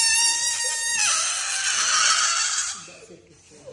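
Air rushes out of a balloon with a loud hiss.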